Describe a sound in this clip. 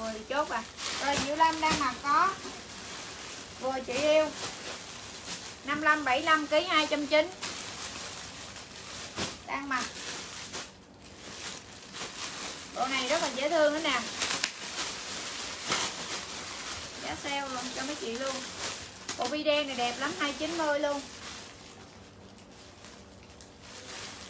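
Plastic bags and clothes rustle as a young woman handles them.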